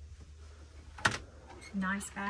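A wooden door clicks open.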